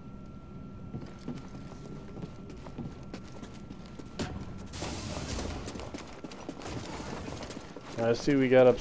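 Footsteps run over a hard floor.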